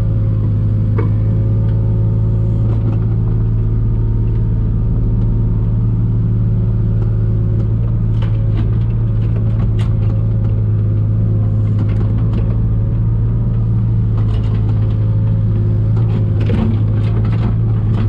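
Soil and rubble clatter and scrape in an excavator bucket.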